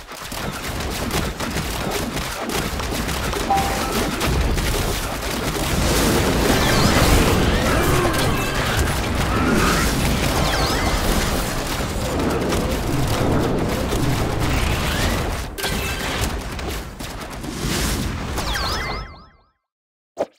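Game battle effects clash and explode rapidly.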